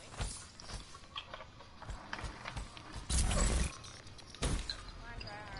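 Footsteps crunch steadily across dirt and gravel.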